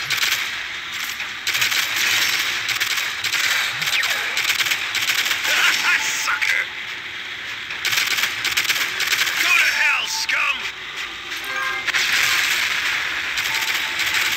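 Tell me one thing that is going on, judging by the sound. Rapid gunfire from a futuristic rifle rattles in bursts.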